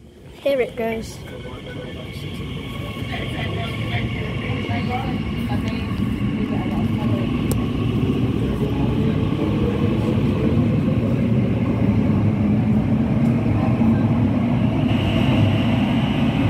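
A train's motor whines, rising in pitch as it speeds up.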